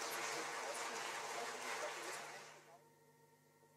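A drummer plays drums and cymbals.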